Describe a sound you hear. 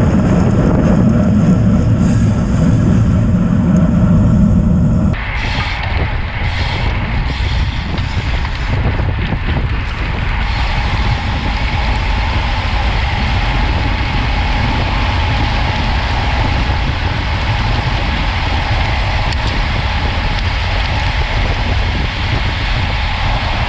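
Wind buffets the microphone loudly while riding outdoors.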